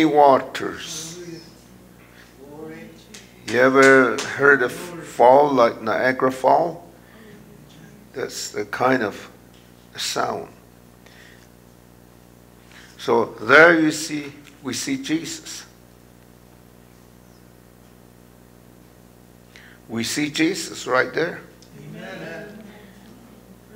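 An older man speaks calmly through a microphone, with pauses.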